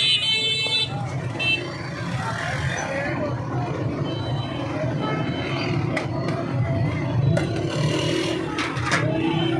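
A metal ladle scrapes and clinks against a steel pot.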